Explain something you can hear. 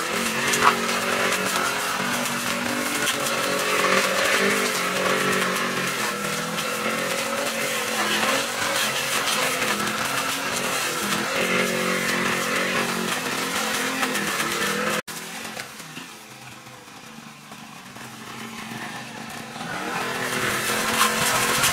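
A petrol string trimmer engine drones steadily, drops to a quieter idle, then revs up again.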